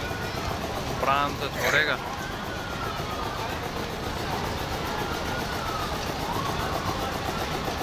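A fairground ride's machinery whirs steadily.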